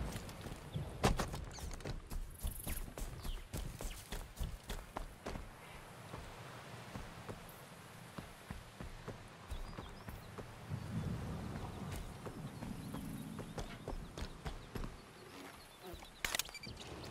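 Heavy footsteps crunch over dirt and grass.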